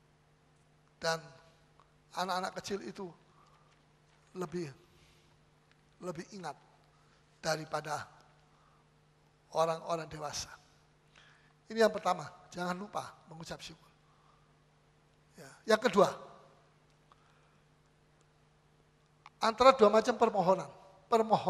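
A middle-aged man preaches with animation through a microphone, in short bursts with pauses.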